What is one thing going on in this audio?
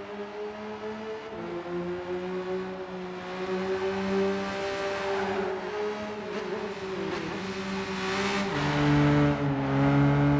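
A racing car engine drones steadily, shifting pitch as it changes gear.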